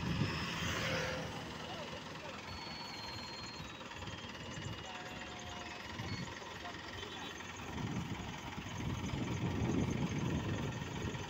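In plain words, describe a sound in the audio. A forklift engine runs.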